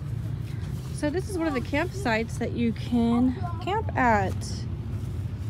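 A child talks excitedly nearby.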